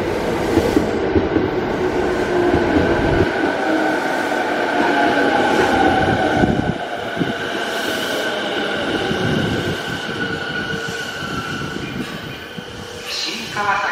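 A train rolls into an echoing station and slows down.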